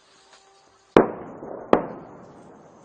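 Two explosions boom in the distance, echoing across open land.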